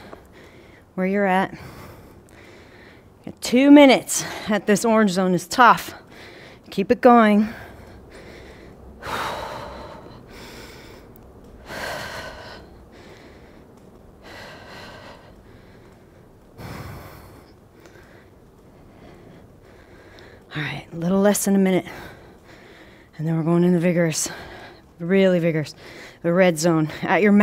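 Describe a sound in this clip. A young woman talks calmly and clearly, close by.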